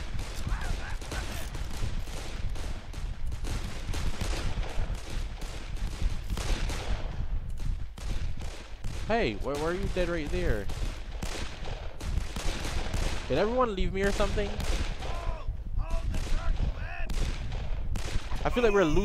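Pistol shots fire rapidly again and again.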